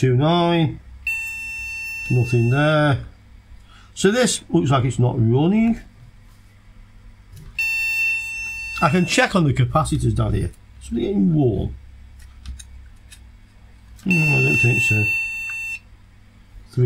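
A multimeter gives long, steady high beeps.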